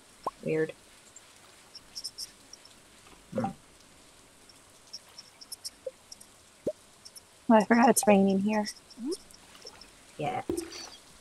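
A young woman speaks casually into a close microphone, in short bursts.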